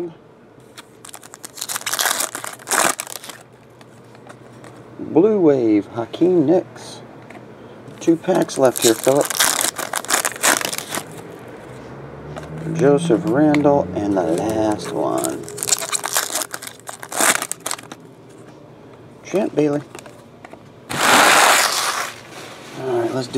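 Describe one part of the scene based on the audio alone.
Foil card wrappers crinkle and tear open.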